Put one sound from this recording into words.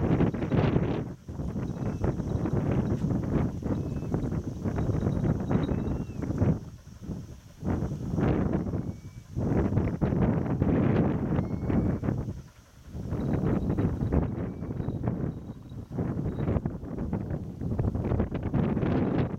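Wind gusts and buffets loudly in the open air.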